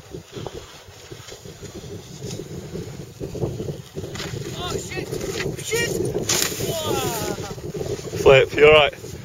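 A snowboard scrapes and hisses over hard snow.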